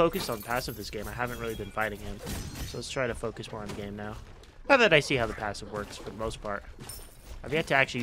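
Weapons strike and thud in a fierce fight.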